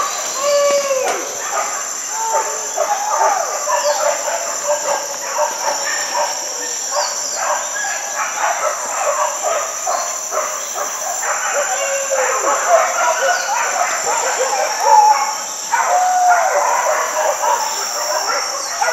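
Birds chirp and whistle all around, outdoors among trees.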